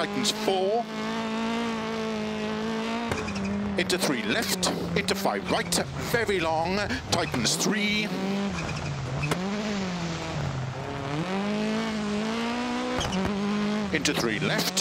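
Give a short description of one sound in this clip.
A rally car engine roars, revving up and down as the car changes gear.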